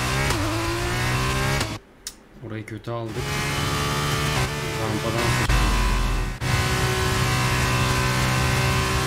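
A racing car engine screams at high revs, shifting through gears.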